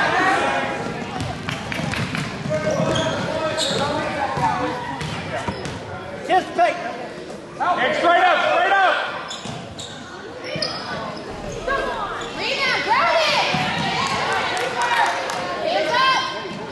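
Sneakers squeak sharply on a wooden court.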